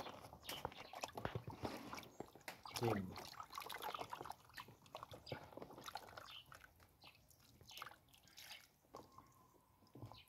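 Hands splash and swish through water.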